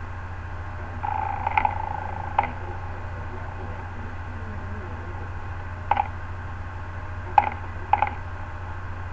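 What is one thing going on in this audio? Short electronic clicks and beeps sound now and then.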